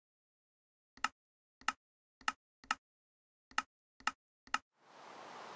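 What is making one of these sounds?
Game menu buttons click.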